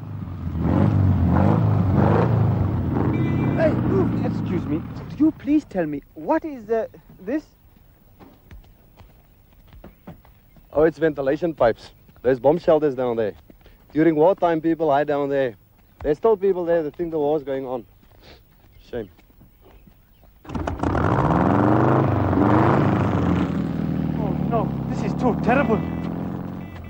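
A motorcycle engine rumbles and revs nearby.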